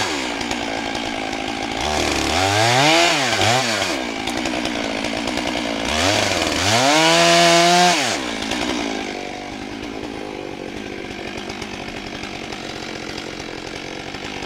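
A chainsaw idles with a steady rattling drone.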